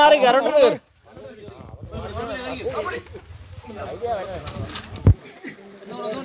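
Several men talk quietly in the background outdoors.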